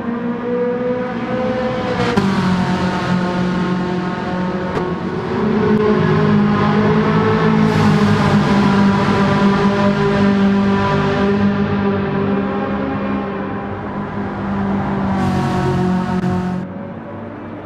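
A racing car engine roars at high revs, shifting gears as it speeds along.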